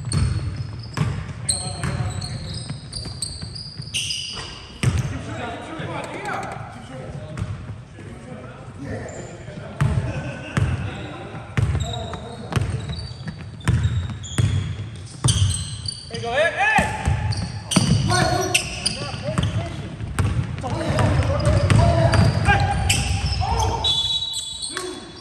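A basketball bounces on a hardwood floor in a large echoing gym.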